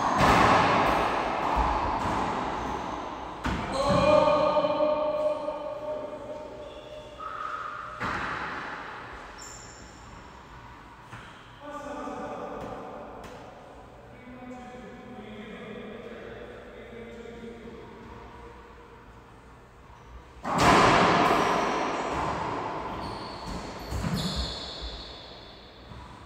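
A racquetball smacks hard against the walls, echoing through a large hard-walled court.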